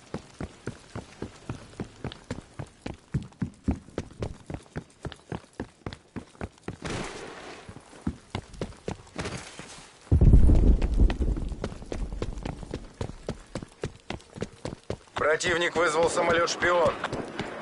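Footsteps run quickly and steadily over hard ground.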